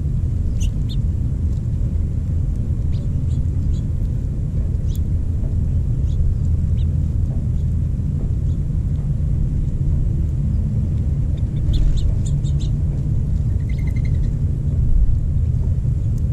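Small birds peck and scratch at gravel close by.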